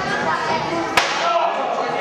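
A body slams hard onto a wrestling ring mat.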